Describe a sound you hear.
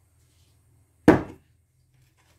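A stone mortar is set down on a counter with a knock.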